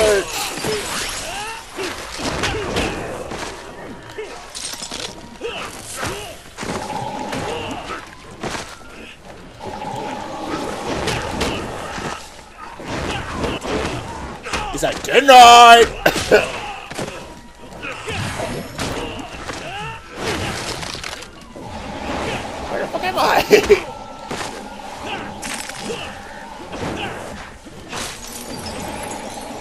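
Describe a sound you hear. Magic blasts whoosh and crackle.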